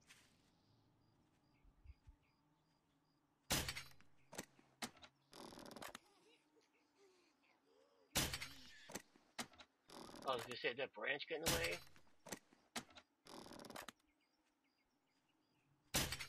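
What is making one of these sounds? A crossbow string is drawn back with a creak.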